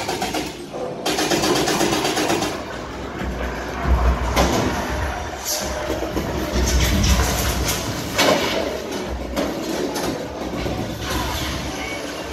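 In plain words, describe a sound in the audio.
Explosions boom and rumble through loudspeakers.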